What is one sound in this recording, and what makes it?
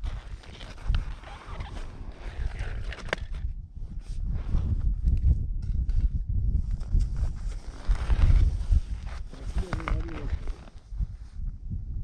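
A man handles ice chunks that crunch and clatter.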